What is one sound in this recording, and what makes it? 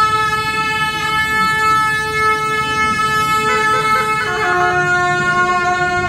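Long brass horns blare loud, sustained notes, shifting pitch now and then.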